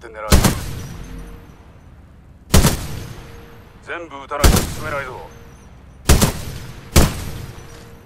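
A rifle fires single loud shots that echo briefly.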